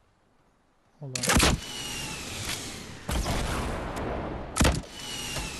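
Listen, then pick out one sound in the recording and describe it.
A gun fires rapidly in a video game.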